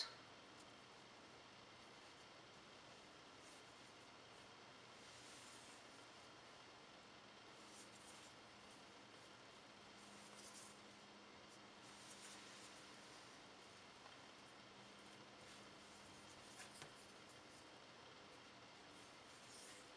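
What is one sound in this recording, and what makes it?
Fingers softly press and smooth soft icing.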